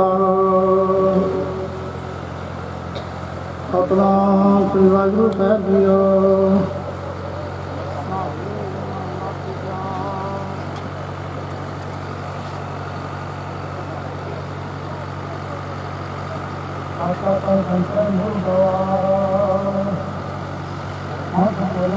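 Men chant a prayer together through a loudspeaker, in long held tones.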